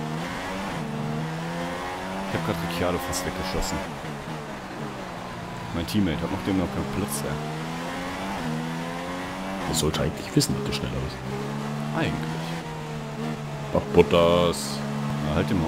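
A racing car engine whines at high revs, rising and dropping as the gears shift.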